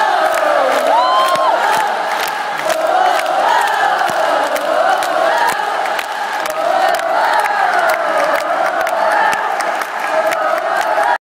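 A large crowd sings along loudly in a big echoing hall.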